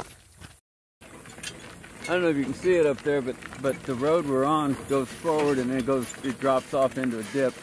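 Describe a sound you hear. Donkey hooves clop on a gravel road.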